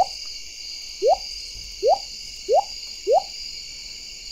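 Short rising game blips sound in quick succession.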